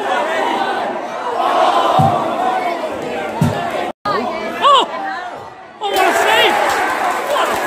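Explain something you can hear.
A crowd of spectators chants and shouts outdoors.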